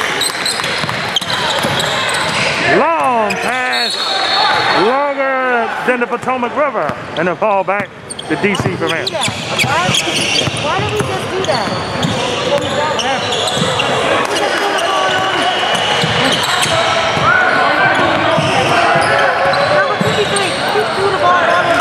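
Spectators chatter and call out in a large echoing hall.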